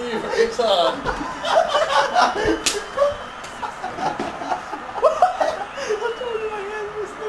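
Young men shout and laugh excitedly nearby.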